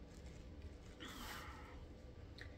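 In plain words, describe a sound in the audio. Fabric rustles as clothing is handled.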